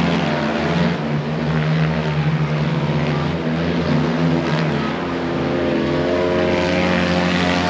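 Motorcycle engines roar and rev loudly.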